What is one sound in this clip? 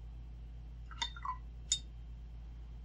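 A paintbrush brushes and taps lightly on paper.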